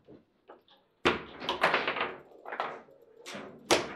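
A table football ball clacks sharply against the players and table walls.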